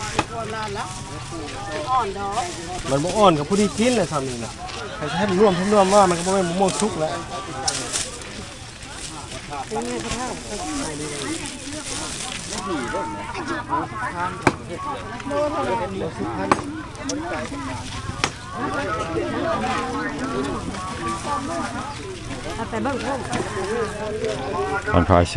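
Women and men chatter around a busy outdoor market.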